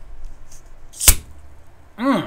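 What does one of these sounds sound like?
A bottle cap twists open with a sharp crack close to a microphone.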